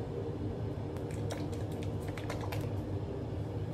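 Rubber gloves rustle and snap on hands.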